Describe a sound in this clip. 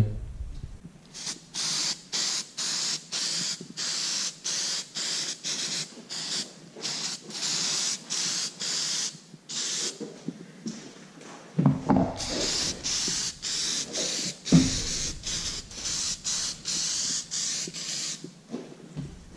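A spray can hisses in short, repeated bursts.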